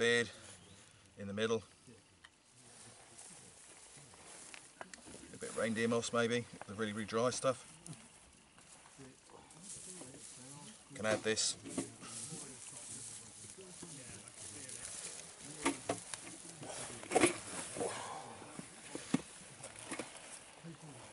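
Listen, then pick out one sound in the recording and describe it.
Dry grass rustles and crackles in a man's hands.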